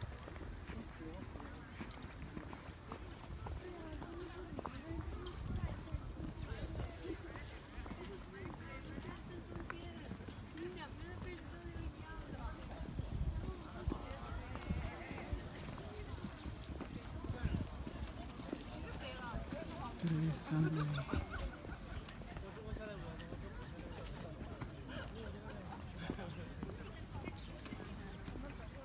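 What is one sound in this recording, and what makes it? Footsteps walk outdoors on brick paving.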